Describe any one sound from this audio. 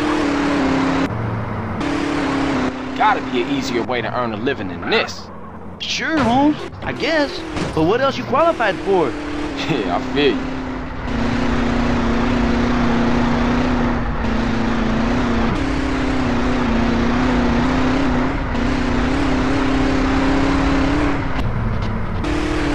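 A car engine hums steadily, its pitch shifting as the car speeds up and slows down.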